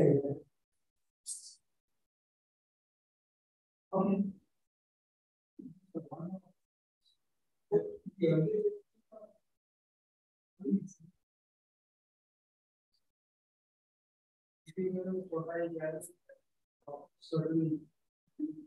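A man speaks calmly in short, halting phrases over an online call.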